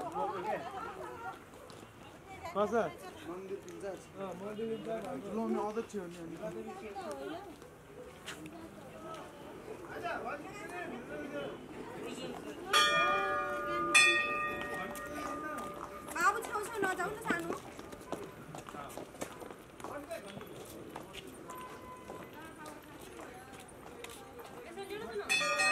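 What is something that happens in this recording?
Several men and women talk casually nearby.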